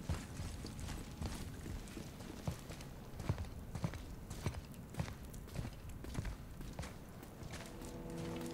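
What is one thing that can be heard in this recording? Metal armour clinks and rattles with each step.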